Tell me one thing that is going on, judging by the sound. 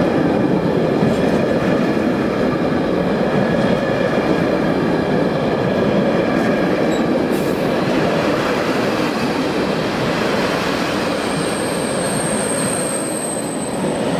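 A freight train rumbles loudly past, close by.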